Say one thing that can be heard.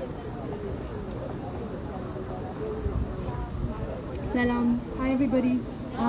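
A woman speaks with animation outdoors.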